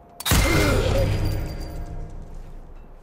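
A silenced pistol shot thuds and rings out briefly.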